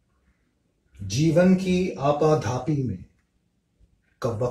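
A man reads aloud calmly, close to the microphone.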